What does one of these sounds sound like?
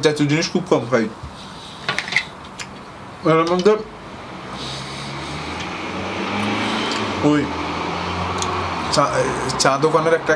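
A young man speaks briefly between bites, close by.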